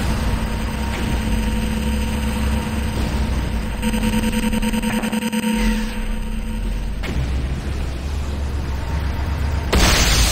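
An energy beam crackles and buzzes.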